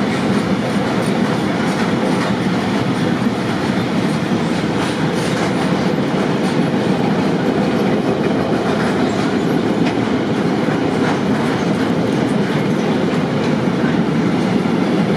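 A freight train rumbles past steadily, with wheels clacking on the rails.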